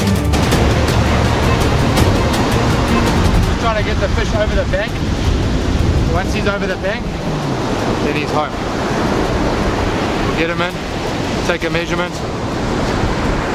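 Waves break and wash steadily onto a beach outdoors in wind.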